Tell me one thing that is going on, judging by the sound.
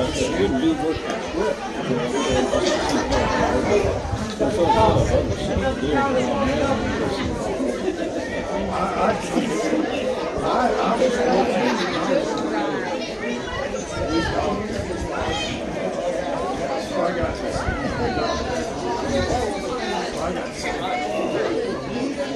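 Softball players shout and chatter across an open outdoor field.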